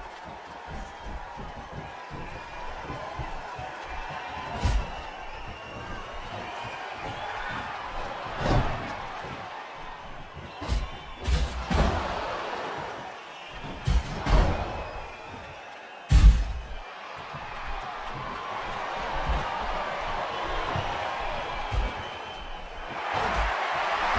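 A crowd cheers steadily in a large arena.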